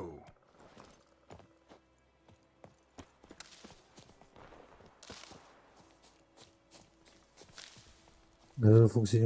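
Footsteps crunch through grass and brush.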